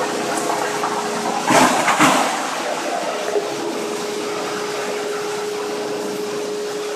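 A dust collector hums and roars steadily.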